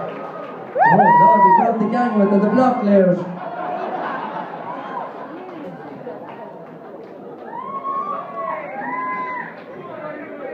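Young men and women whoop loudly.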